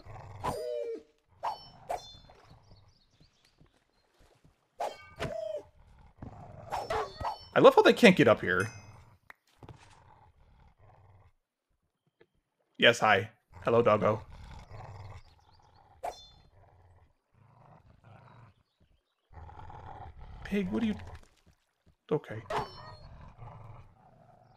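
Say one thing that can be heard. A wolf whines and growls in short, high bursts.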